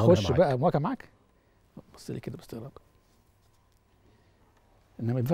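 An elderly man speaks calmly and firmly into a close microphone, in short bursts with pauses.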